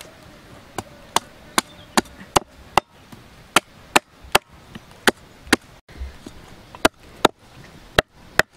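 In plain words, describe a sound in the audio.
A cleaver chops sharply on a wooden block.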